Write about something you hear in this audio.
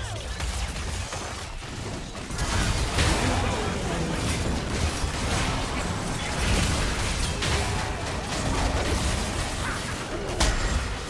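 Magic spells whoosh and crackle in a chaotic battle.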